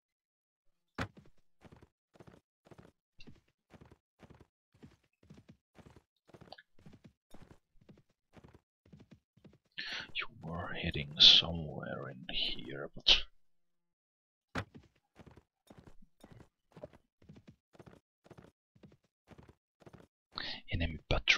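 Horse hooves clop at a steady trot.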